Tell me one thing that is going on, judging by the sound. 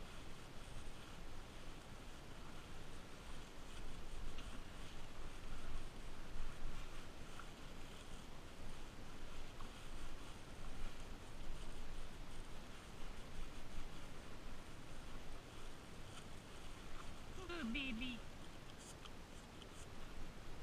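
Plastic gloves rustle against fur.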